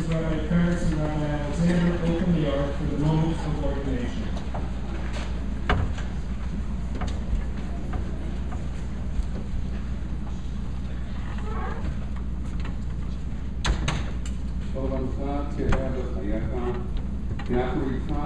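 A man chants a song in a large hall.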